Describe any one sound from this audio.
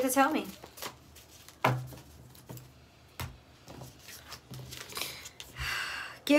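Cards shuffle and riffle in a woman's hands.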